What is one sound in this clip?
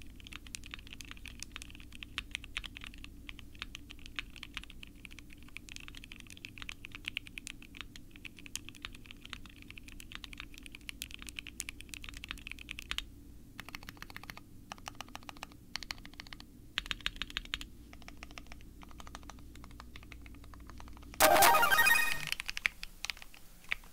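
Keys clack rapidly on a mechanical keyboard, close by.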